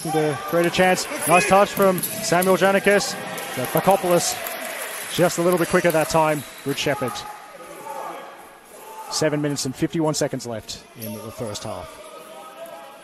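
A man shouts loudly close by in an echoing hall.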